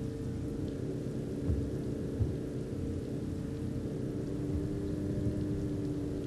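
Tyres rumble over a road.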